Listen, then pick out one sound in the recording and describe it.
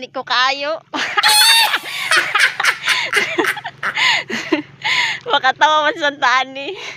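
A young woman laughs.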